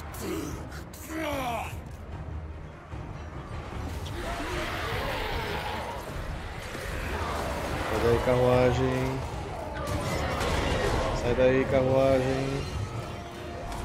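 Battle noise of clashing weapons and shouting rumbles on.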